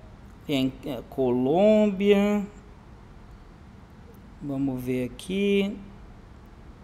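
A man speaks into a microphone with animation, in short bursts.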